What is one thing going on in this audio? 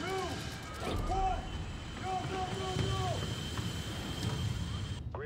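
A large explosion roars and rumbles.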